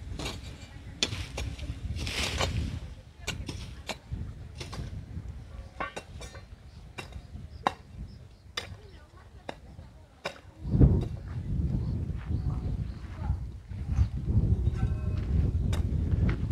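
A woman digs in dry soil with a hoe.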